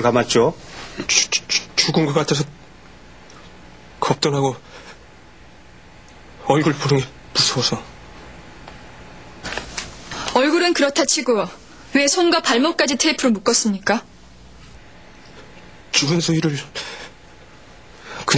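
A young man speaks in a low, tense voice.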